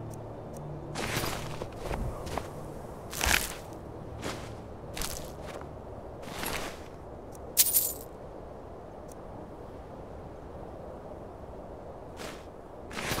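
A soft whooshing swish sounds several times, like a menu sliding open and items being picked.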